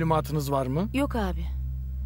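A man asks a question in a low, tense voice.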